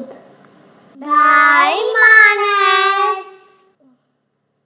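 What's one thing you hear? Children sing together playfully.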